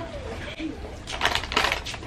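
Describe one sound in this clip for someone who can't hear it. A young boy speaks briefly.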